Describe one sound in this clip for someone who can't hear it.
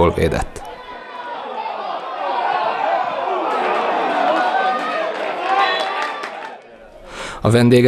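A crowd cheers in the distance outdoors.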